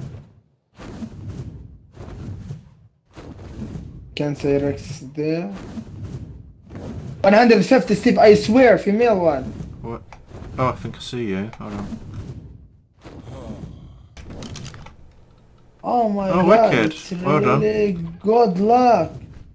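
Large wings flap in slow, heavy beats.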